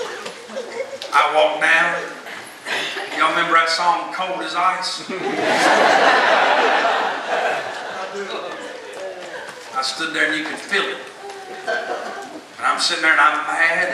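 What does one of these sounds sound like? A man speaks calmly through loudspeakers in a large hall.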